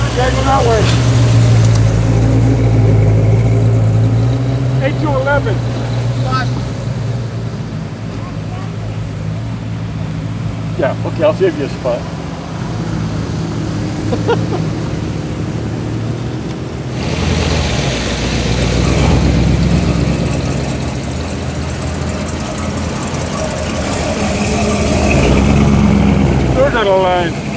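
Tyres hiss on the road as cars pass.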